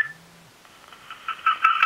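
A phone plays a steady electronic tone through its small speaker.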